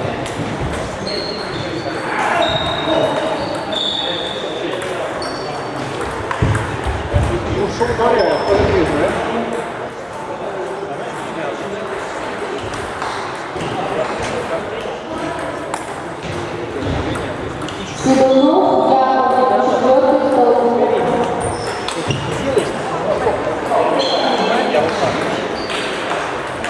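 Voices of several players murmur and call out across the hall.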